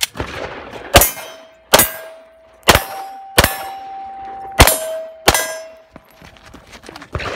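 A steel target rings out with a metallic ping when struck.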